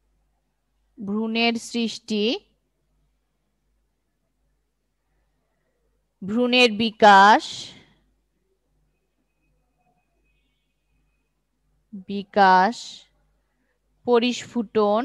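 A woman speaks calmly in short phrases, close to a microphone.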